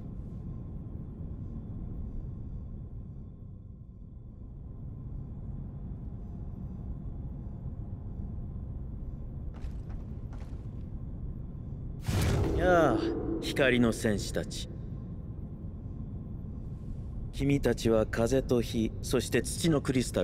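A low, steady hum drones throughout.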